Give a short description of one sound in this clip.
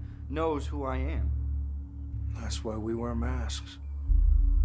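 A man speaks quietly up close.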